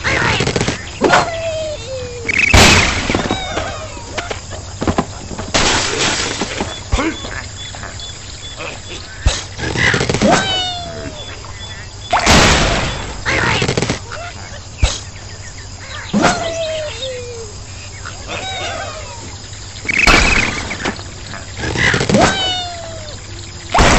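Cartoon birds squawk as they fly through the air.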